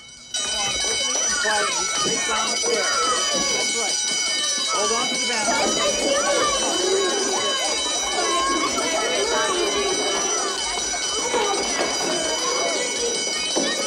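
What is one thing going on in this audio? A crowd of children shouts and chatters excitedly close by.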